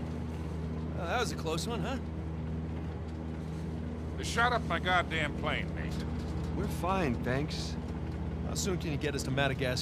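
A young man speaks casually.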